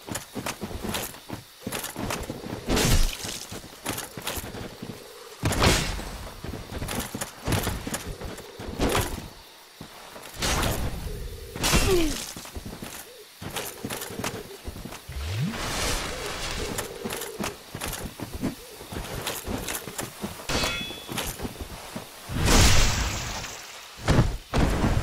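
Armoured footsteps thud on grass.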